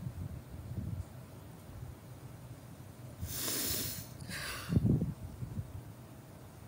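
A young woman speaks softly and quietly close to a microphone.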